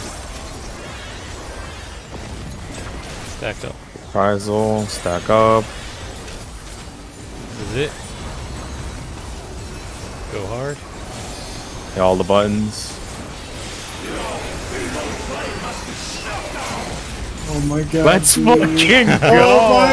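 Magic spell effects whoosh and crackle.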